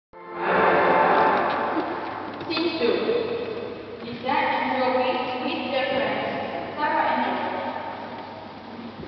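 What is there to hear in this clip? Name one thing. A child reads aloud clearly in a large echoing hall.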